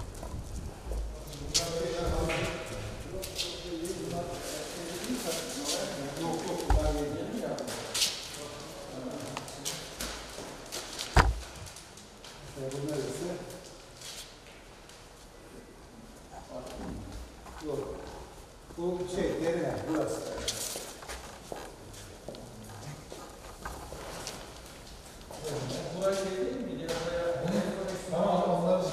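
Several men talk in low voices nearby, in an echoing room.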